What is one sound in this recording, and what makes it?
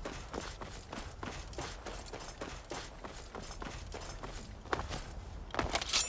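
Footsteps crunch steadily over dirt and stone.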